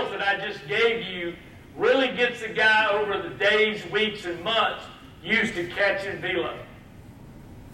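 A man speaks with animation to an audience.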